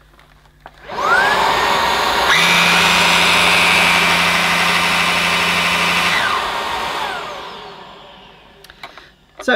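A vacuum cleaner motor whirs loudly, then winds down.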